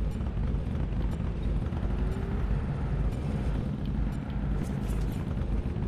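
A motorcycle engine rumbles steadily as the bike rides along.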